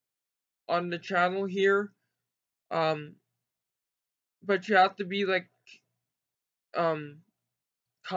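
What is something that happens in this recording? A young man speaks calmly close to a microphone, in short phrases with pauses.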